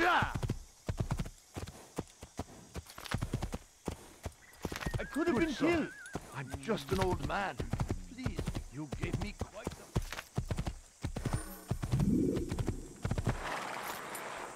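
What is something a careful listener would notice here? A horse gallops with steady thudding hoofbeats.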